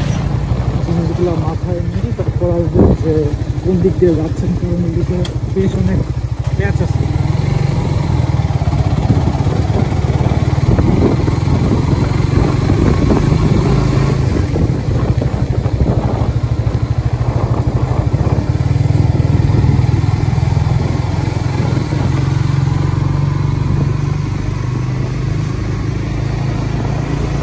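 A motorcycle engine hums steadily up close as it rides along.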